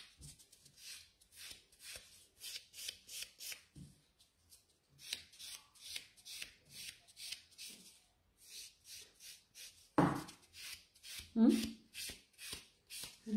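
A nail file rasps back and forth against a fingernail in quick, short strokes.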